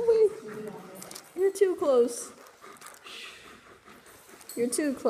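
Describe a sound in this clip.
A dog howls and whines up close in short, wavering bursts.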